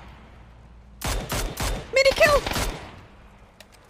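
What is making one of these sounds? Rifle shots crack in quick succession.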